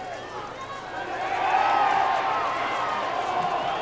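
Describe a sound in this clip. A crowd cheers loudly as the play unfolds.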